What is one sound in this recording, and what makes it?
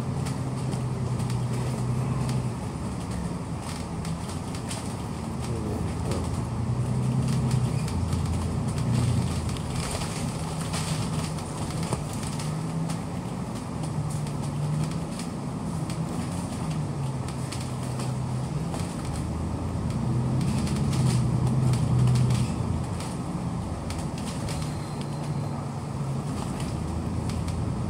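A bus engine rumbles and hums steadily, rising and falling as the bus drives along.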